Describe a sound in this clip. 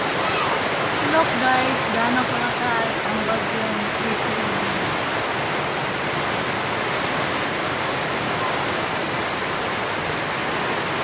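Rainwater gushes off a roof edge and splashes onto the ground.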